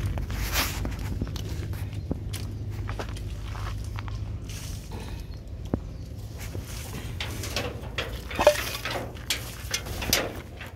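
Small pebbles crunch and scrape on the ground.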